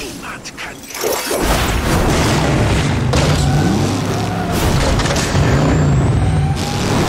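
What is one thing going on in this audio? Flames roar loudly.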